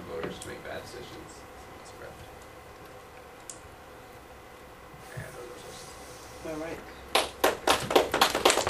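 A teenage boy speaks to a room, a little way off.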